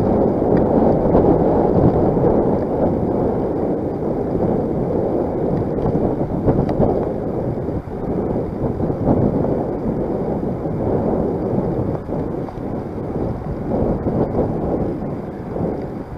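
Wind buffets loudly and steadily against the microphone of a moving rider.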